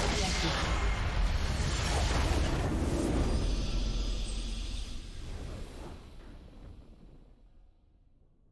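A loud game explosion booms and rumbles, then slowly fades away.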